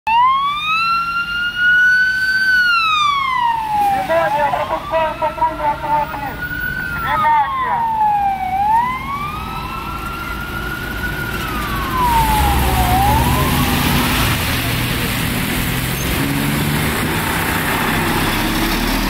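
Cars drive past on a wet road with a hiss of tyres.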